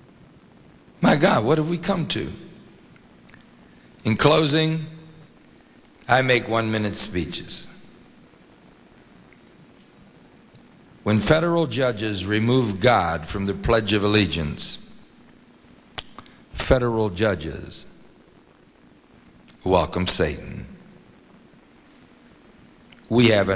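An older man speaks slowly and deliberately into a microphone, with long pauses.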